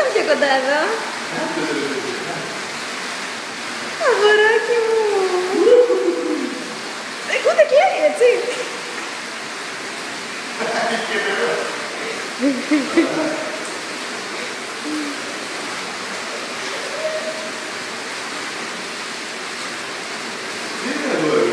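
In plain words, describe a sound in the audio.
Water splashes and laps gently.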